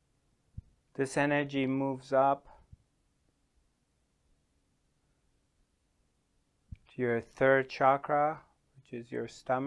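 A middle-aged man speaks calmly and slowly into a close microphone, with long pauses.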